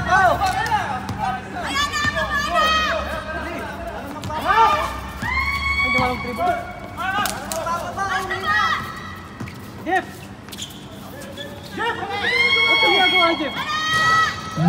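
A basketball bounces on the hard court.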